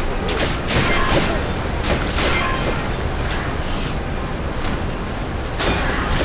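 Sharp magical whooshes and bursts ring out.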